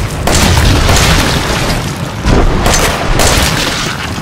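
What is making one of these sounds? A pistol fires loud, sharp shots.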